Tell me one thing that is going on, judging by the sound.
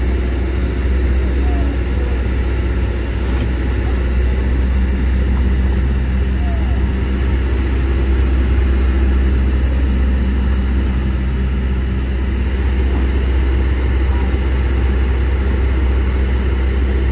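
A vehicle engine rumbles steadily close by.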